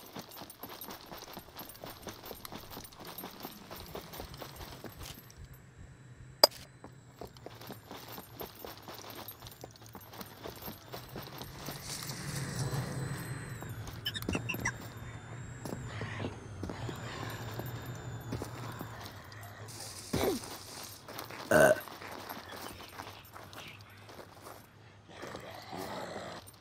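Footsteps tread steadily on stone paving.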